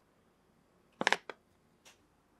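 Chopsticks click against a small ceramic dish.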